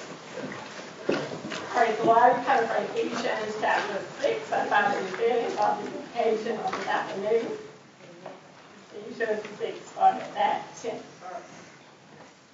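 A woman speaks with feeling through a microphone in an echoing room.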